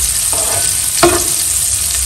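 A metal ladle scrapes against a metal pot.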